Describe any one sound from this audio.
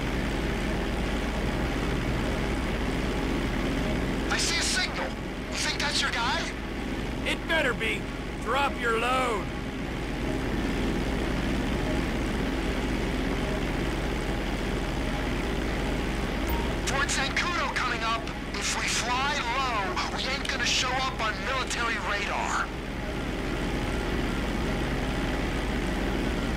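A propeller plane's engines drone steadily.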